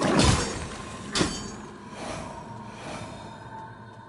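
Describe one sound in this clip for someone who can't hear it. A magic blast crackles and whooshes.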